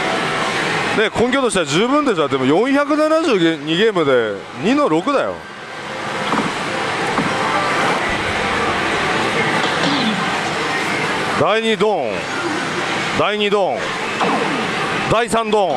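A slot machine plays loud electronic jingles and sound effects.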